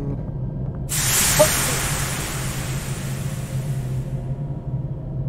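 Steam hisses from a vent.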